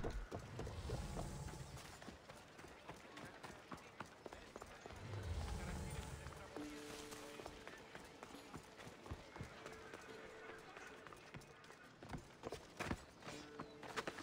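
Footsteps patter quickly on ground and wooden boards.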